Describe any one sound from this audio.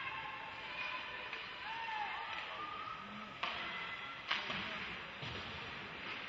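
A crowd murmurs in a large echoing rink.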